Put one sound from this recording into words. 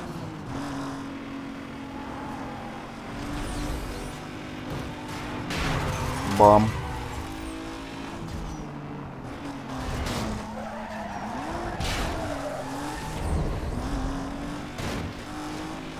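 A racing car engine roars and shifts through gears.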